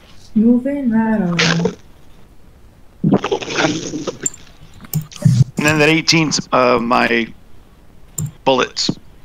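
A man talks with animation over an online call.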